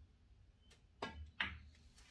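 A cue stick strikes a billiard ball with a sharp click.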